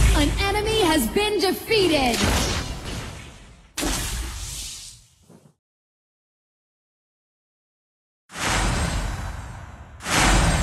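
Game sound effects whoosh and clash in quick bursts.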